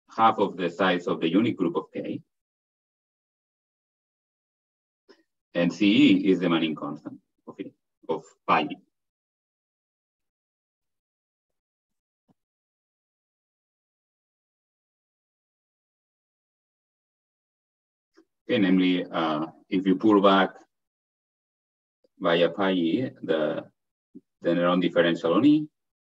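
A man lectures calmly over an online call, pausing now and then.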